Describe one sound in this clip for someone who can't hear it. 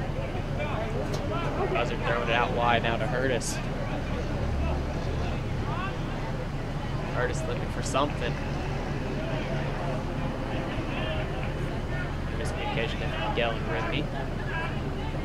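Young men shout and call out to each other across an open field, at a distance.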